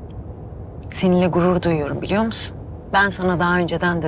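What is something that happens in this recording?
Another young woman answers with animation nearby.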